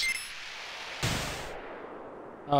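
A snowboarder crashes with a thud into the snow.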